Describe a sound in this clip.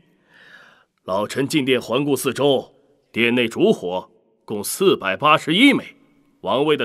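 A young man speaks steadily at length.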